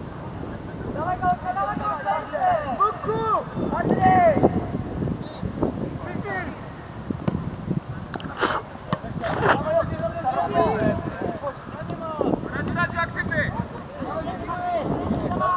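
Young players shout across an open outdoor pitch.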